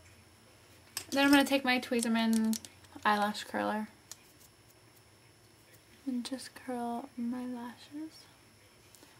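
A young woman speaks calmly close to a microphone.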